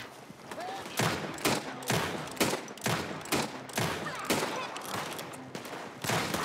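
Gunshots crack out in quick bursts, echoing outdoors.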